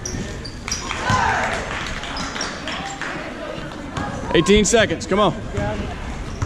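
Sneakers squeak on the court.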